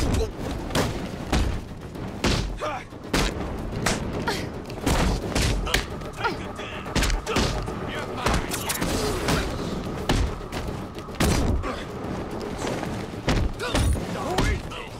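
Punches and kicks land with heavy thuds again and again.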